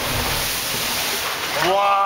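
Water sprays and pours down from a rock opening.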